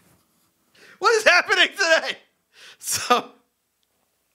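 A man sings with animation into a close microphone.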